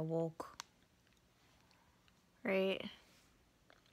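A young woman speaks softly and close, in short bursts.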